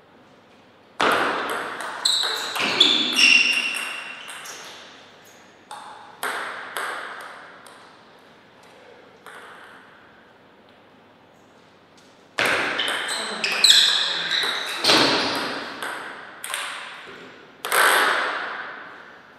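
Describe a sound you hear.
A table tennis ball clicks back and forth between paddles and bounces on the table, echoing in a large hall.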